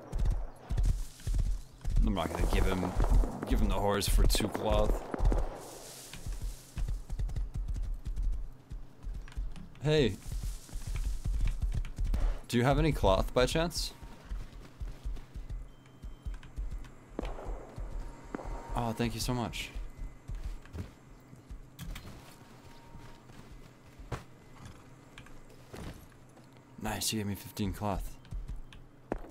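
A horse's hooves thud rhythmically as it trots and gallops over the ground.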